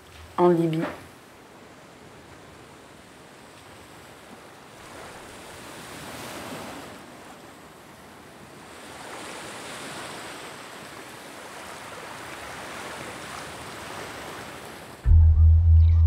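Waves roll and wash on open water.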